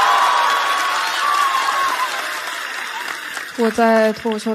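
An audience cheers and applauds in a large hall.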